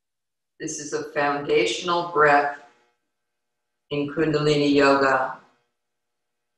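A woman speaks calmly and softly into a nearby microphone.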